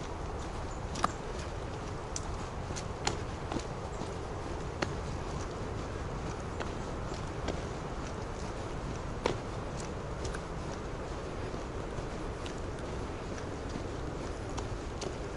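Footsteps tap now and then on a paved path.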